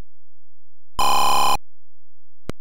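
A retro computer game plays a harsh buzzing tone.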